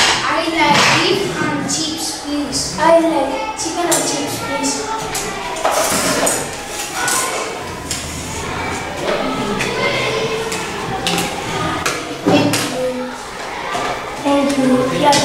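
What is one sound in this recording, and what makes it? Young boys talk with animation close by.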